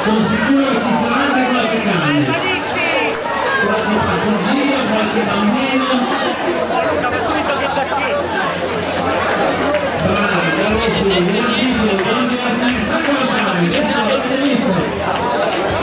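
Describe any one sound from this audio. A large crowd of men and women chatters and cheers outdoors.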